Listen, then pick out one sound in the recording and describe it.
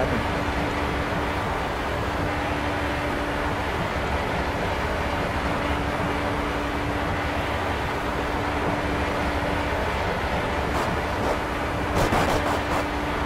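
An open-wheel race car engine drones at high speed in a racing video game.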